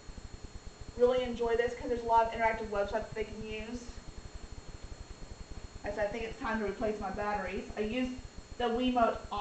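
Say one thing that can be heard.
A woman speaks clearly to a room, close by.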